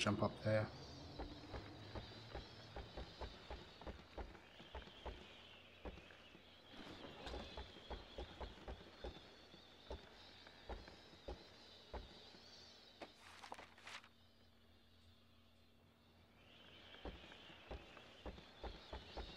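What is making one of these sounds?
Heavy boots thud steadily on wooden stairs and floorboards.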